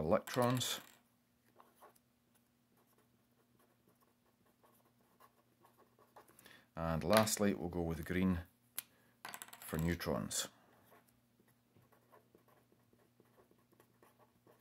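A felt-tip marker squeaks and scratches on paper.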